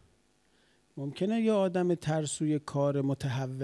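A middle-aged man speaks with feeling into a microphone, close by.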